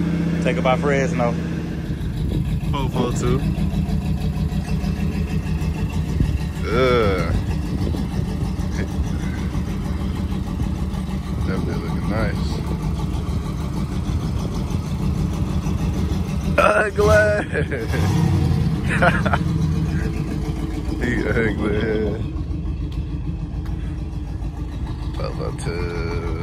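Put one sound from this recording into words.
A car engine idles with a deep, uneven rumble close by.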